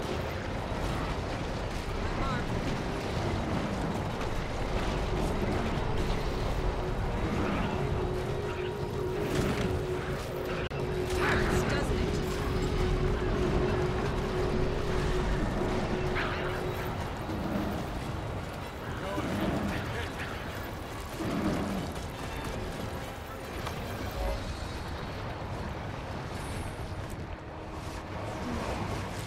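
Magic spells burst and crackle in a game battle.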